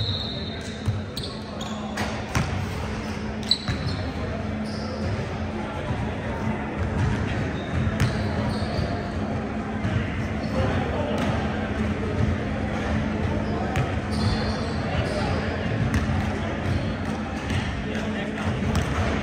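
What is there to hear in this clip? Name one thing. A basketball bounces with echoing thuds in a large hall.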